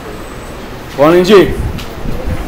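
A child calls out briefly, heard through an online call.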